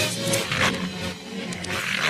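A dog growls and snarls.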